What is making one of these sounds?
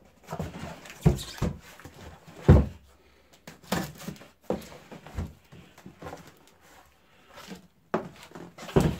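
Hands turn a cardboard box over, scraping and thumping it.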